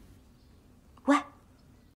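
A young woman gasps in fright.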